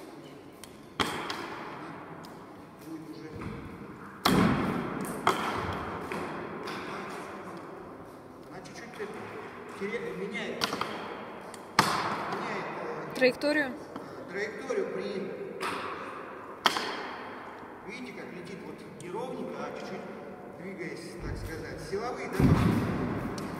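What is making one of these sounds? A whip cracks sharply several times, echoing through a large hall.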